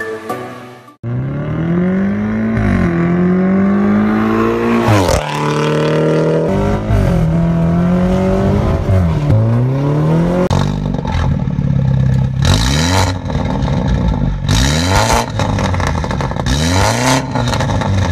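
A car engine revs loudly through a sport exhaust, rising and falling in sharp bursts.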